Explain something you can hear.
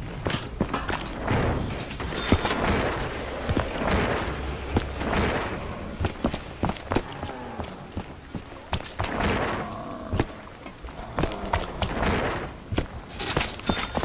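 Footsteps tap steadily on a hard stone path.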